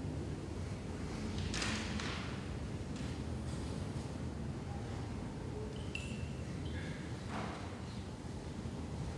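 A man speaks softly in a large echoing hall.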